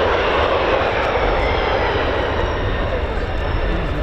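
Jet tyres screech as they touch the runway.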